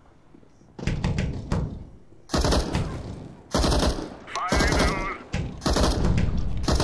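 Automatic gunfire rattles in short, loud bursts.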